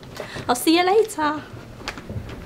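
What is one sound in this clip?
A young woman exclaims playfully.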